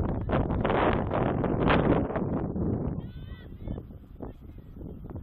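Soccer players call out to each other faintly across an open field.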